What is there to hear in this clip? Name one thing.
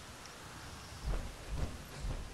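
Heavy armoured footsteps thud on rough ground.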